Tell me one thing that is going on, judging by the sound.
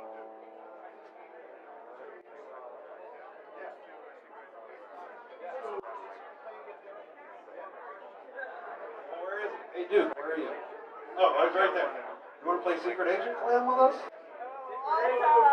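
A live band plays electric guitars.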